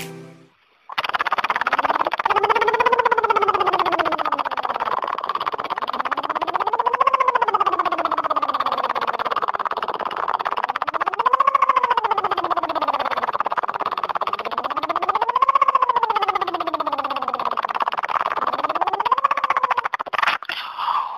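A man's recorded voice sings slow rising and falling sirens through a phone speaker.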